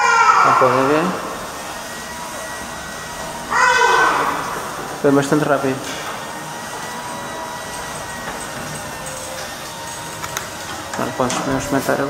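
A garage door motor hums steadily as the door rolls open.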